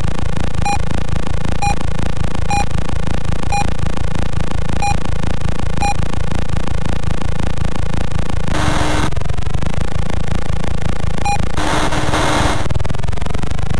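A game boat's engine drones in a steady, buzzing electronic tone.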